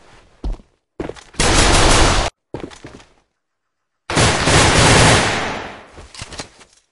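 A rifle fires rapid bursts of shots up close.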